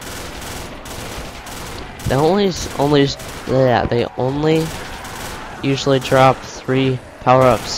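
A rifle fires shots.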